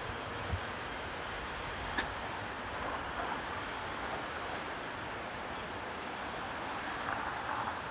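Footsteps fall on concrete.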